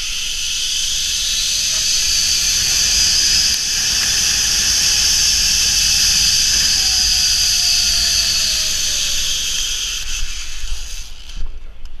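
Wind rushes past a microphone.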